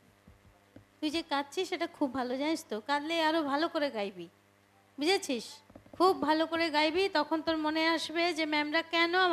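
A young girl sings into a microphone.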